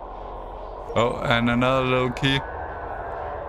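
A man speaks loudly and with animation into a close microphone.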